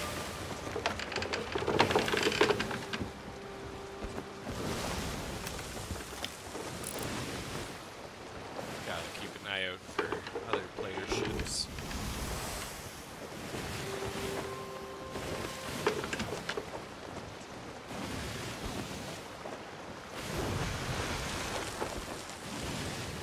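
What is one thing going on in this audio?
Wind blows steadily in the open air.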